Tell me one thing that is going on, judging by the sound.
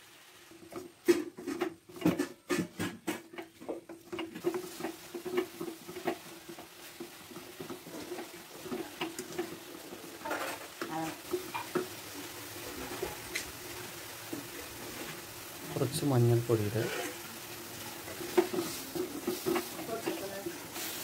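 A wooden spatula scrapes and clatters against a metal pan.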